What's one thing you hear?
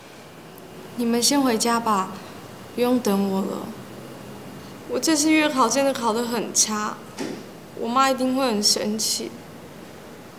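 A young woman speaks quietly and tearfully, close by.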